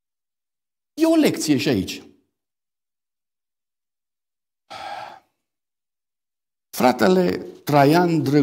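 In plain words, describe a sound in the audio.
A middle-aged man reads aloud into a microphone, with long pauses.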